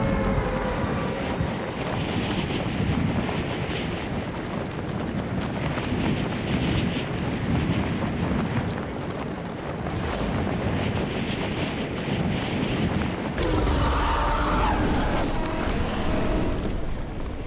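Wind rushes steadily past a skydiving game character.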